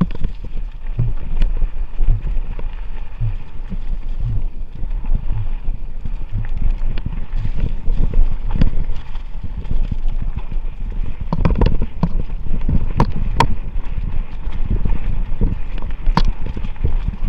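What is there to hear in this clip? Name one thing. Bicycle tyres roll and crunch over a rough dirt trail.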